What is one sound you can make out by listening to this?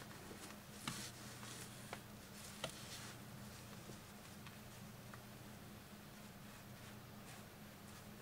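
Yarn rustles softly as fingers handle a knitted fabric.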